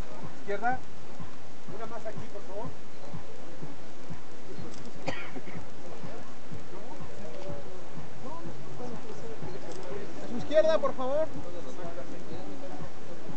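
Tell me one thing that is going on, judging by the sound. A crowd of men and women chatters and calls out close by.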